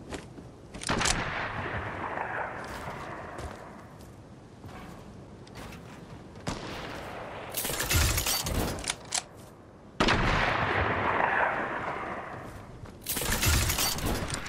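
Wooden and metal building pieces snap into place with quick clacks.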